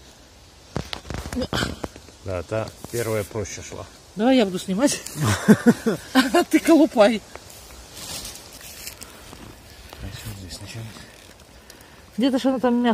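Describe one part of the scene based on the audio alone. A knife scrapes and crunches against hard fungus on bark.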